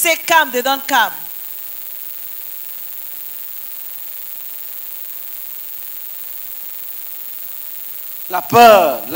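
A woman speaks with animation through a microphone and loudspeaker, in short bursts with pauses.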